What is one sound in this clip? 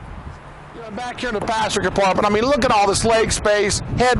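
A man speaks calmly outdoors, close by.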